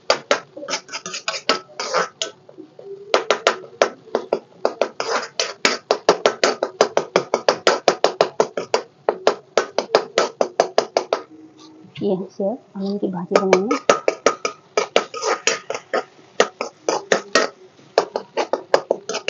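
A metal spoon scrapes and clanks rapidly against a wok.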